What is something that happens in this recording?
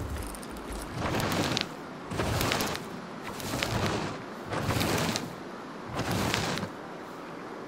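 Leaves and brush rustle as a large creature pushes through them.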